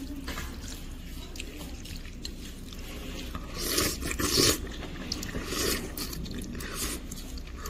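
Someone slurps soup and seaweed loudly, up close.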